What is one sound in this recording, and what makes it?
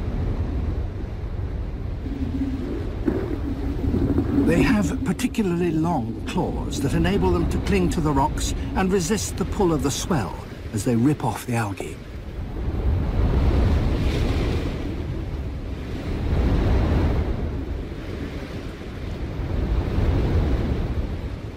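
Water rumbles and swirls underwater.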